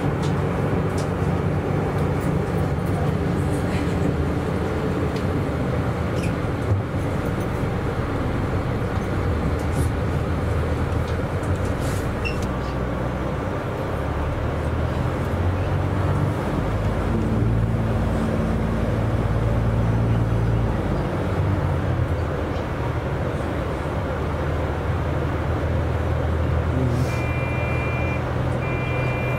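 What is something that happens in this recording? A vehicle's engine hums steadily while driving along a road.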